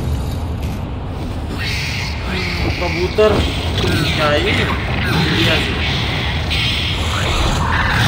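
Birds flap their wings and screech overhead.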